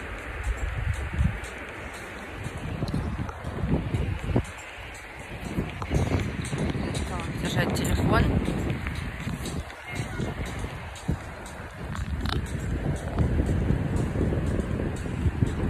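Wind gusts roughly buffet the microphone outdoors.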